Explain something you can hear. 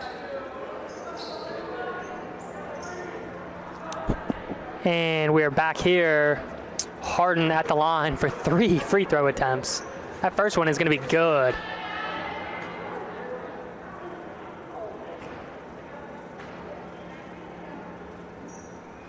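A small crowd murmurs in a large echoing gym.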